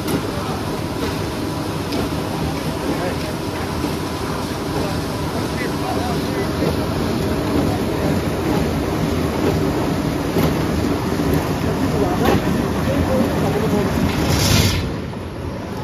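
Heavy woodworking machinery runs with a loud, steady rumble and rattle.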